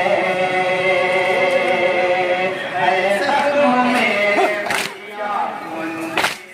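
A man chants loudly into a microphone, heard through loudspeakers.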